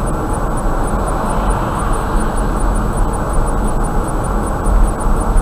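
Tyres roar steadily on the road from inside a moving car.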